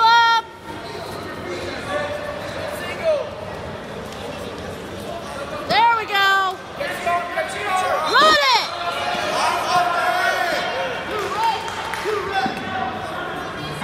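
A crowd shouts and cheers in a large echoing gym.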